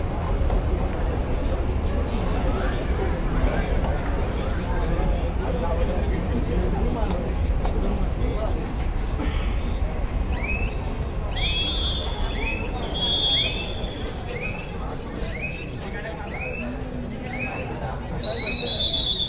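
A large crowd of spectators murmurs and chatters in an echoing hall.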